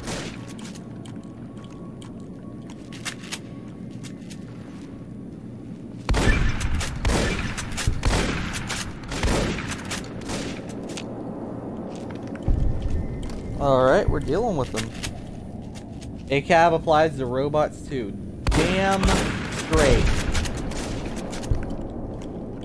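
A shotgun is pumped and reloaded with metallic clicks.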